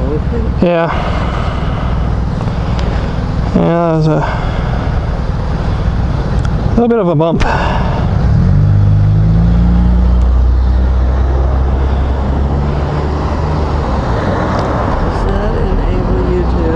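A woman speaks close by, asking questions.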